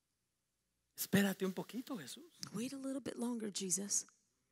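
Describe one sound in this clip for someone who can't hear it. A woman speaks with feeling into a microphone, heard through loudspeakers in a large room.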